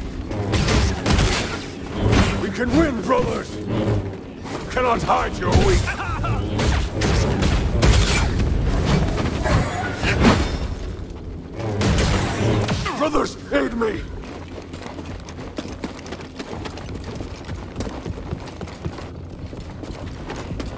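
An energy blade hums and swooshes as it swings.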